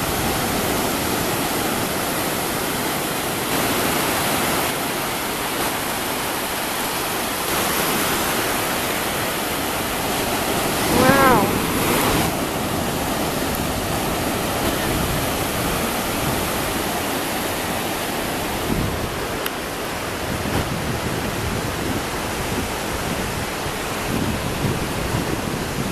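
Ocean surf breaks and washes up onto a beach.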